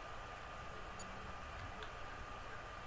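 A short electronic blip sounds as a menu selection moves.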